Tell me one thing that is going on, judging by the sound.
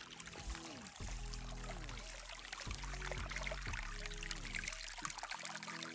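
A shallow stream babbles and trickles over stones.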